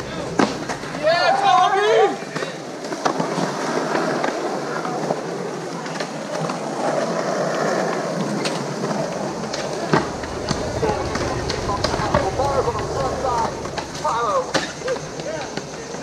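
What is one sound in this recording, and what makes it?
Young boys shout and call out nearby outdoors.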